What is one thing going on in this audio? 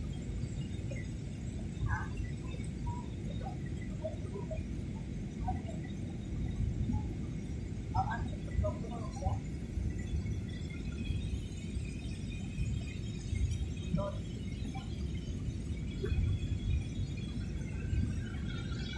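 A jet engine roars steadily inside an airliner cabin.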